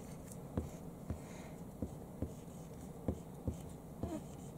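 A felt marker taps and scrapes softly on a whiteboard.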